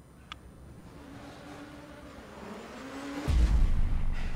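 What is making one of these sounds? A rally car engine revs higher and higher.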